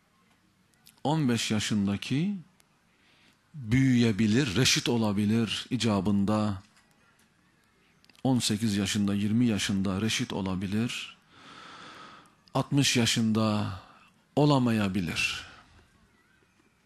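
A man speaks slowly and forcefully into a microphone, with long pauses, in an echoing hall.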